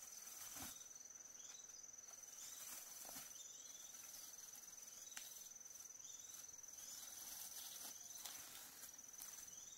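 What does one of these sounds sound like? A person rustles through leafy undergrowth close by.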